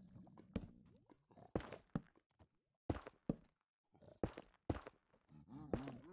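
Blocks are placed with soft thuds.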